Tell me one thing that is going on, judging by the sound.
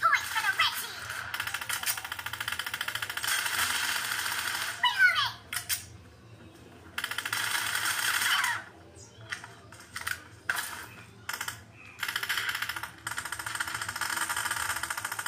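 A shooting game plays rapid gunfire through a phone's speaker.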